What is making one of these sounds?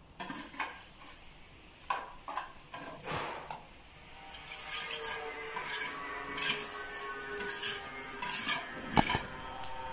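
A metal tool scrapes against a wall in short strokes.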